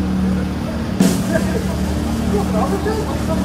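A crowd of people chatter nearby outdoors.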